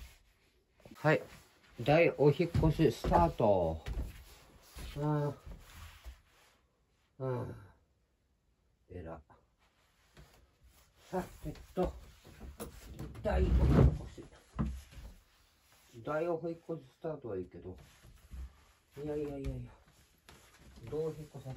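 A man talks close by in a casual voice.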